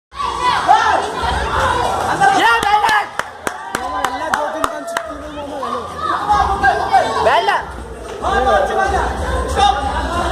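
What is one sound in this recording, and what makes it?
Young children shout and cheer excitedly nearby.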